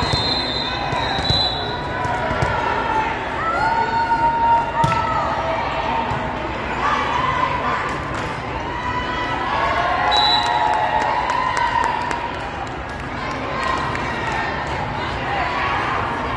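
A volleyball thuds off hands during play.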